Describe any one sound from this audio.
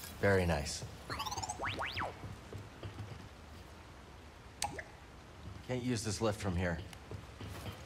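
A small robot chirps and beeps in warbling tones.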